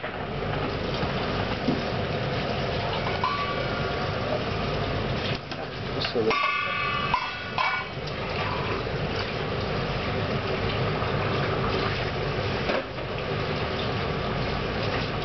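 Water boils and bubbles steadily in a pot.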